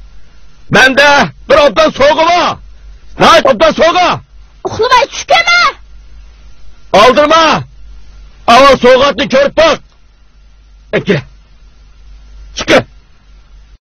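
A man speaks with agitation, close by.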